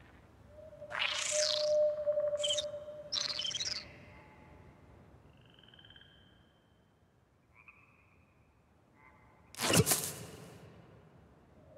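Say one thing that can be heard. Electronic game sound effects chirp and whoosh.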